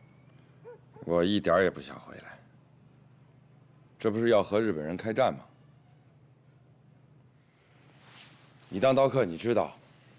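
A younger man answers calmly and firmly.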